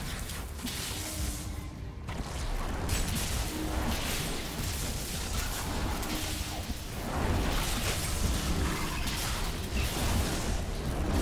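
Spells crackle and burst in rapid fighting.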